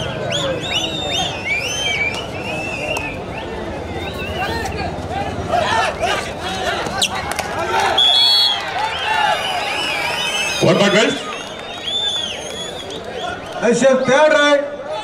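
A large crowd cheers and shouts throughout.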